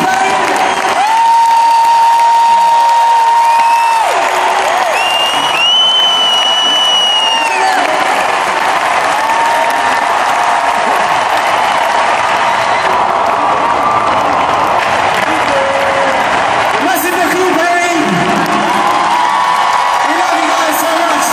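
A man sings through loudspeakers, echoing across the stadium.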